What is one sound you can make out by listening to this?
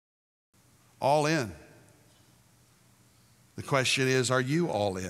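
An elderly man speaks calmly and clearly through a microphone.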